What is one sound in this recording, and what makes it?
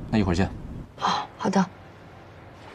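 A woman answers briefly.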